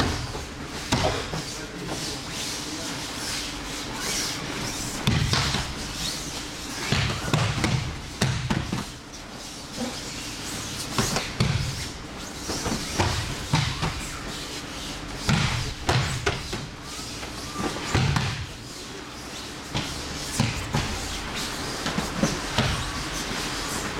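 Bare feet shuffle and slap on a mat.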